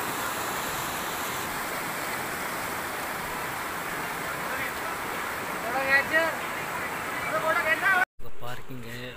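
Water rushes over rocks nearby.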